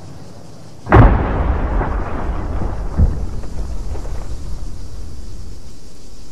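An aircraft crashes into the ground with a heavy, rumbling blast.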